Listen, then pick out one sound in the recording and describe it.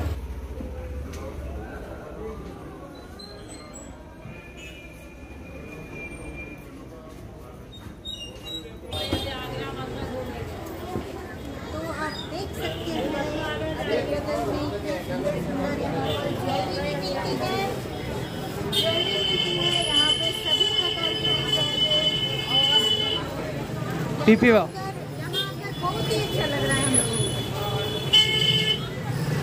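A busy street crowd murmurs in the background.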